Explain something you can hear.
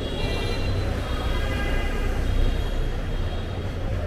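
A car engine hums as a car drives slowly past.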